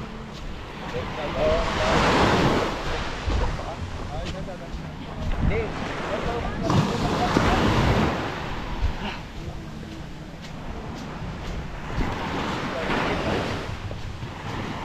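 Footsteps crunch on wet sand.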